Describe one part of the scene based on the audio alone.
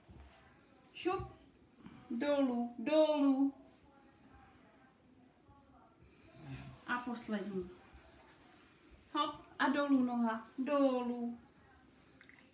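A woman speaks playfully up close.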